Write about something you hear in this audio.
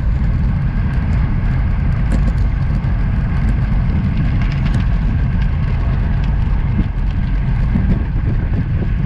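Bicycle tyres hum on a rough road.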